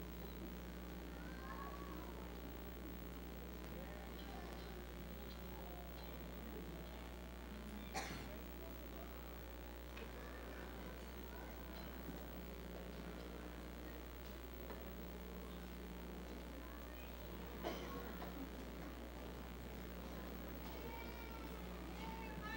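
Men and women talk and murmur quietly at a distance in a large hall.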